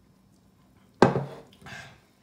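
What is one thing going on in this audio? A metal mug knocks as it is set down on a table.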